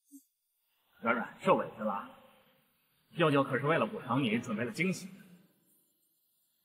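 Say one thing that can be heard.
A man speaks gently, close by.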